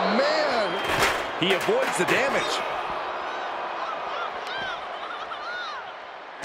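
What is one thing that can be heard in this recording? Heavy blows thud as two fighters brawl.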